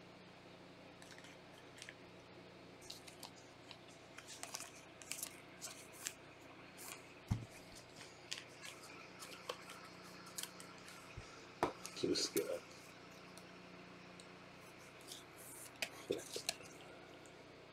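Plastic wrappers crinkle close by as they are handled.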